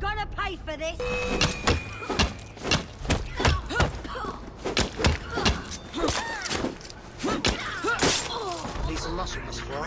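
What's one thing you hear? Punches and blows land hard in a fistfight.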